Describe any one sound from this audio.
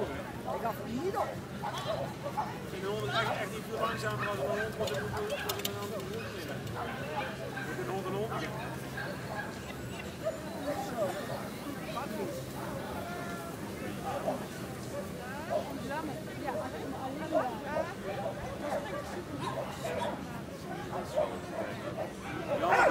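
A crowd chatters and calls outdoors.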